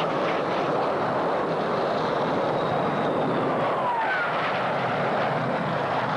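Jet planes roar overhead.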